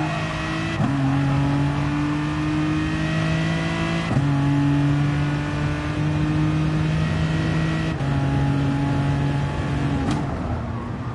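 A racing car engine roars at high revs, rising in pitch and dropping sharply with each gear shift.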